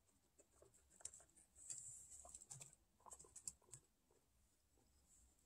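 A guinea pig crunches dry pellets.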